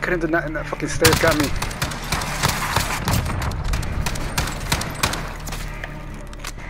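Rapid gunfire cracks in quick bursts.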